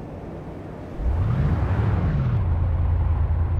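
A vehicle engine starts up and revs with a low rising hum.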